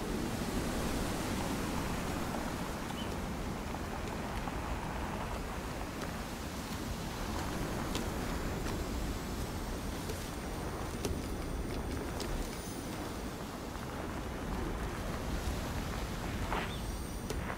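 Footsteps rustle quickly through grass and bushes.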